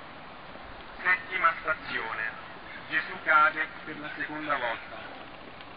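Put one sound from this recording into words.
A man speaks loudly nearby, reading out a prayer.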